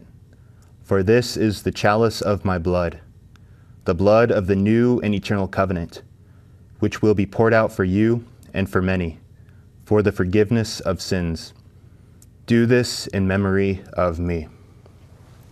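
A man speaks quietly and steadily into a microphone, in short phrases.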